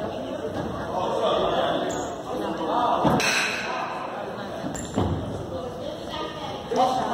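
A crowd chatters in a large echoing gym.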